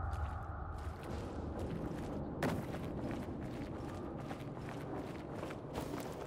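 Footsteps crunch over rubble and debris.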